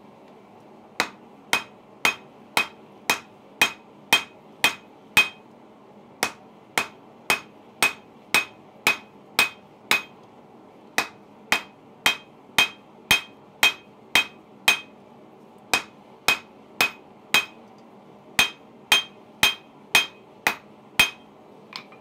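A hammer rings sharply on a metal anvil in a steady rhythm.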